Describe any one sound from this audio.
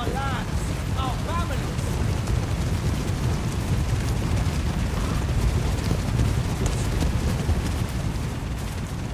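Many horses' hooves thunder in a steady rumble as cavalry marches.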